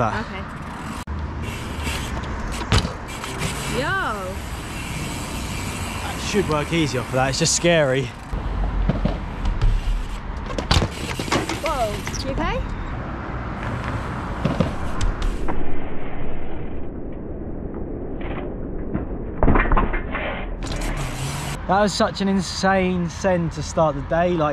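Bicycle tyres roll on tarmac.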